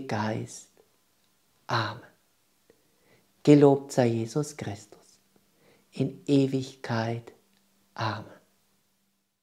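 A middle-aged man speaks warmly and calmly, close to a microphone.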